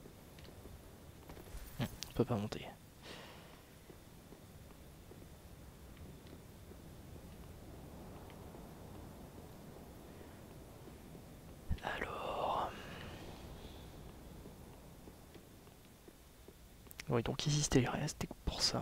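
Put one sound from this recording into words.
Armoured footsteps run across stone.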